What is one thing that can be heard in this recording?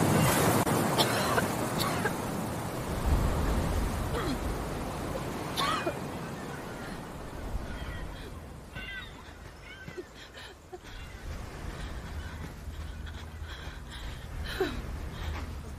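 Waves wash gently onto a beach nearby.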